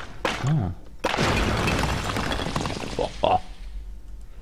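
Bricks crumble and clatter to the ground.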